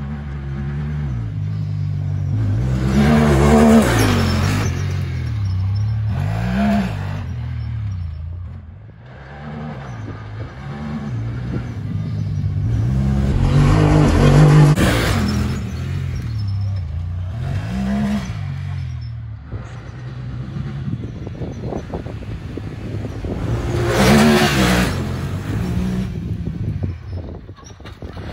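An off-road buggy engine roars and revs up and down as it passes close by, again and again.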